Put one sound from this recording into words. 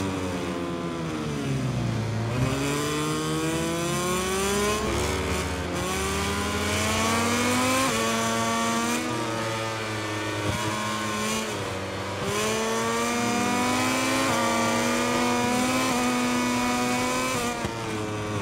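A racing motorcycle engine screams, rising in pitch as it speeds up and dropping as it shifts gears.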